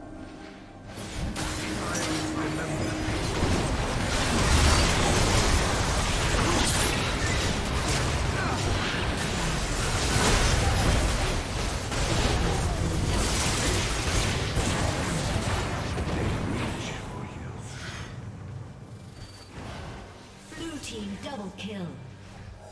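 Game spell effects and combat sounds crash and clash rapidly.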